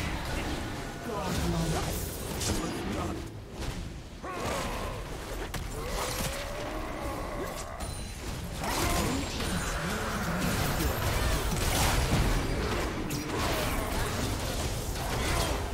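Fantasy battle sound effects of spells and blows crackle and whoosh.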